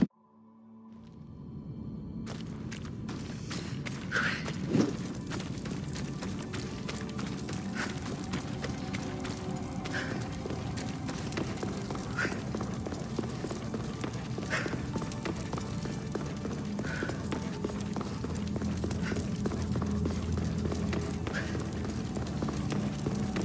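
Footsteps crunch on sandy ground.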